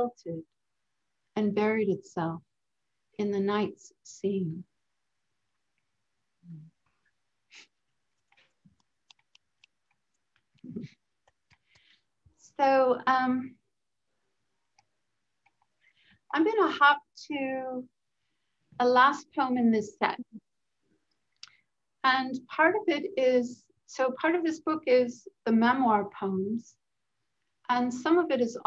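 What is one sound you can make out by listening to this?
A woman speaks calmly over an online call, pausing often.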